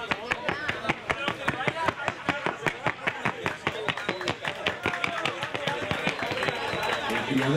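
Horse hooves beat in a fast, even rhythm.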